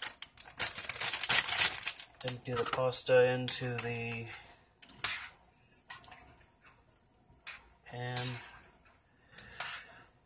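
A spoon scrapes and clinks against a stainless steel saucepan as food is stirred.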